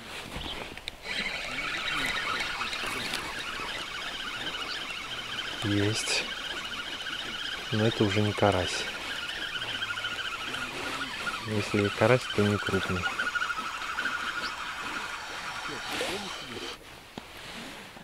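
A fishing reel whirs steadily as its handle is cranked.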